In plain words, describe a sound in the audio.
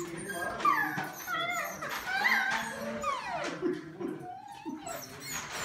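Puppies whine and squeal in high, rising and falling cries.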